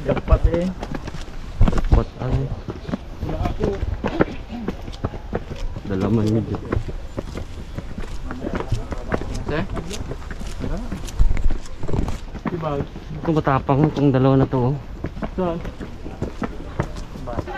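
A man talks nearby in a casual tone.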